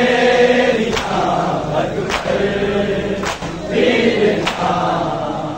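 Many men beat their chests in unison with a steady slow rhythm.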